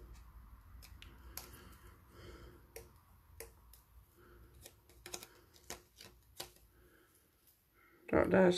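Small clicks and taps sound as a tool touches paper.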